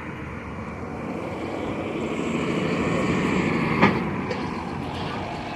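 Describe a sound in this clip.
A car drives past close by on a city street.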